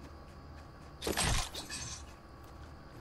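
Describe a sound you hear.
A wooden door swings open.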